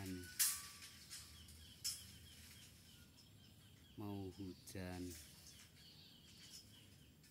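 A small bird chirps in short, repeated calls nearby.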